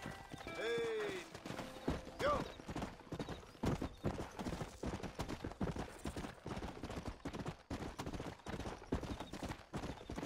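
Horse hooves thud rhythmically on a dirt path at a gallop.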